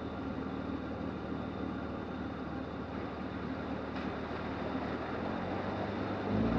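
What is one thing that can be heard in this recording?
Tyres squelch through wet mud.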